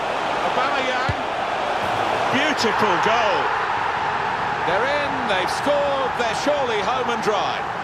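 A stadium crowd roars and cheers loudly.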